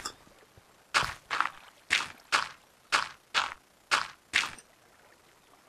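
Blocks of earth and stone crunch as they are dug out, in quick regular knocks.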